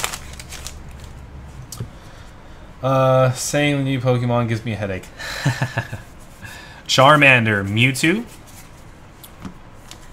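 Playing cards shuffle and flick against each other.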